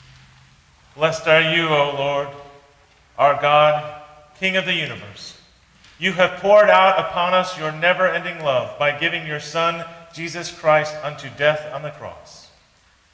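A man chants in a steady voice in a slightly echoing room.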